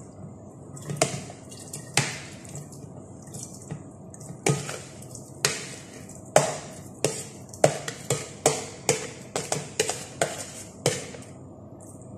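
Raisins tip and rattle into a glass blender jar.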